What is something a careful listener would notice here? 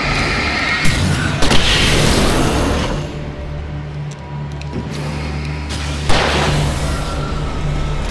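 An explosion roars and crackles.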